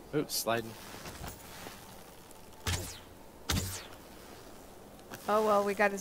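A bowstring twangs as an arrow flies off.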